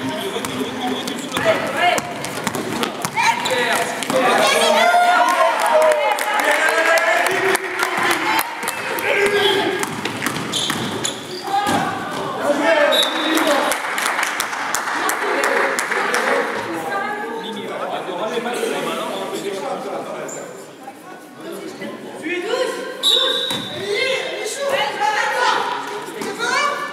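Players and spectators shout and call out in a large echoing hall.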